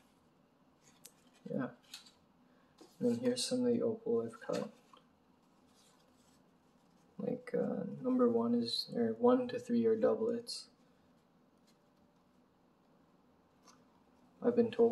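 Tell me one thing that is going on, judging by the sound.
A small card rustles as fingers handle it.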